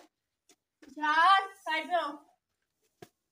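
A small girl calls out in a high voice.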